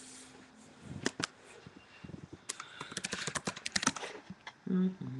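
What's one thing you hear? Knocks and taps sound as an instrument is handled close by.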